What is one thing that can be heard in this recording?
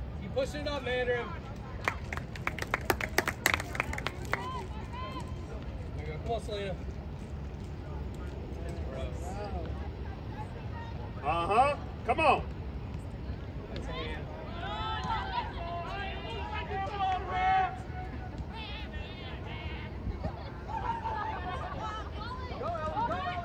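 Spectators on the sideline shout and cheer outdoors.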